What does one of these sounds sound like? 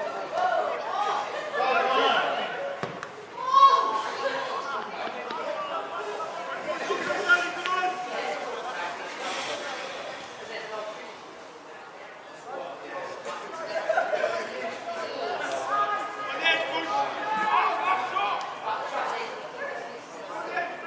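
Players shout to each other across an open pitch outdoors.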